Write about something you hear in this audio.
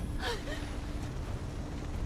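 A young woman speaks quietly.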